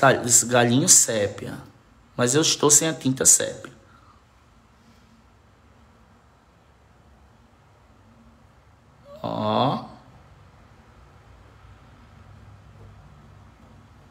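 A paintbrush strokes softly across canvas.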